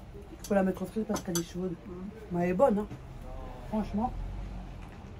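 A woman speaks close by in a lively voice.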